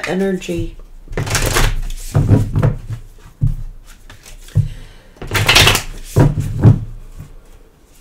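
Cards shuffle and riffle in a woman's hands.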